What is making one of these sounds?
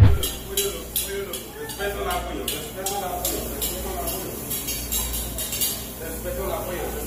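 Metal tongs click together rapidly.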